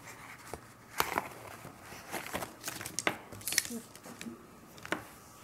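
A cardboard box scrapes and knocks against a table.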